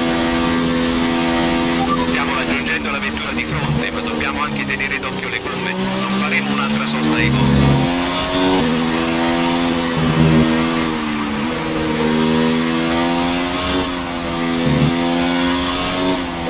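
A racing car engine screams at high revs, dropping in pitch as it brakes into corners and rising again as it accelerates.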